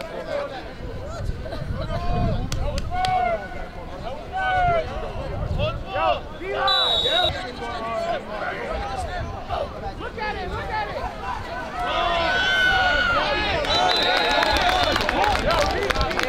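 A crowd of spectators shouts and cheers outdoors, growing louder.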